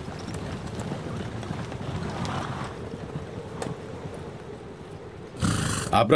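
Horses' hooves clop slowly over rocky ground.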